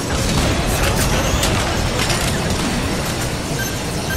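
Laser beams zap and crackle.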